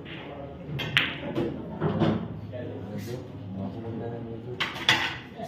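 Billiard balls roll across the table and knock against a cushion.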